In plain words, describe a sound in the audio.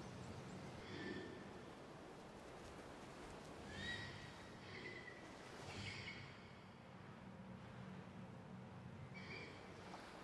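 An eagle screeches several times.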